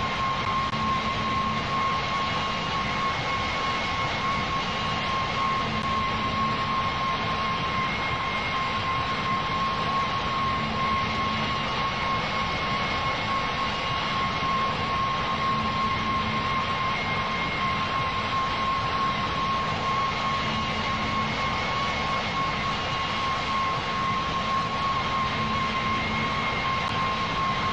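A jet airliner's engines hum steadily.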